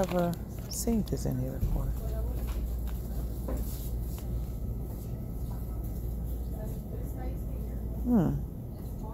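A foil packet crinkles in a hand.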